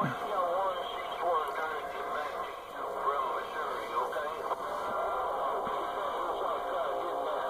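A radio receiver plays a crackly, band-limited transmission through its loudspeaker.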